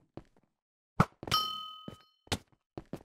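Sharp short swishes of a sword swing come in quick bursts.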